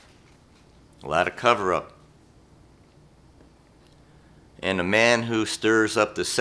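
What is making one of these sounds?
An elderly man speaks slowly and calmly into a microphone, reading out.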